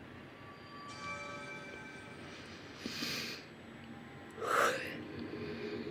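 A shimmering magical chime swells and bursts.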